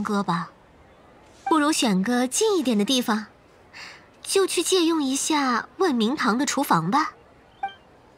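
A young woman speaks calmly and clearly, close up.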